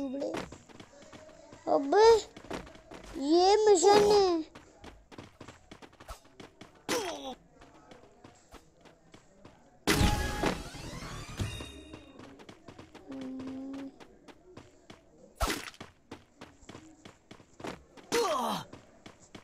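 A young boy talks excitedly close to a microphone.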